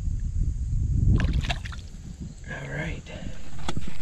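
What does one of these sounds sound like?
A fish splashes into the water as it is let go.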